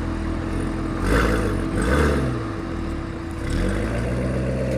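A sports car's engine revs loudly in short bursts.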